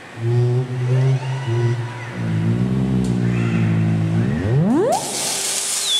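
Low electronic tones drone and then sweep sharply upward.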